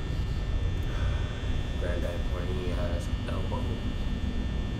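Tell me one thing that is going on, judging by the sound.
A young man speaks casually into a microphone, close by.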